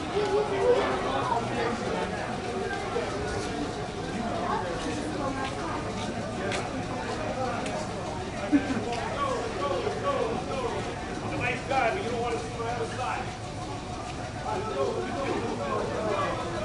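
A train idles with a low steady hum.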